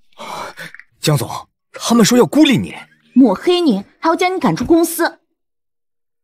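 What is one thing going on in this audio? A man speaks urgently nearby.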